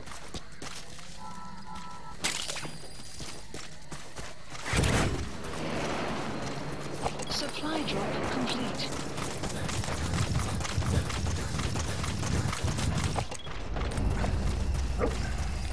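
Footsteps crunch quickly over grass and dirt.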